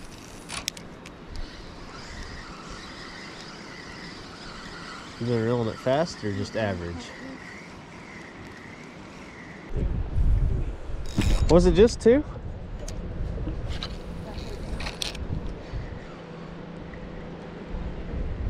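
A fishing reel whirs as its handle is wound.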